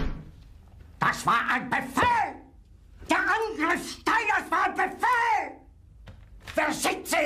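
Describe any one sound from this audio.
A man shouts angrily and loudly, close by.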